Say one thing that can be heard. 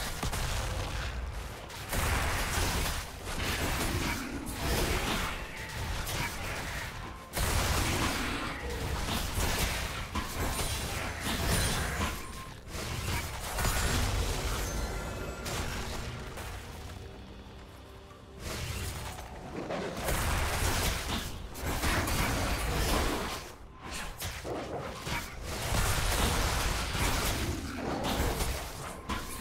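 Game spell effects whoosh and crackle in repeated bursts.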